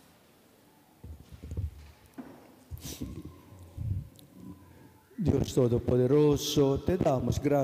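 A man speaks calmly into a microphone in a large echoing hall.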